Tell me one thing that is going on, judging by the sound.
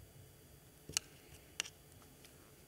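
A paintbrush clinks against a water jar.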